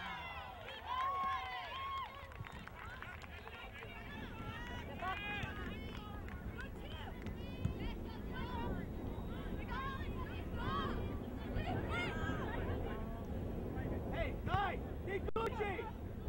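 Spectators shout and cheer from the sidelines outdoors.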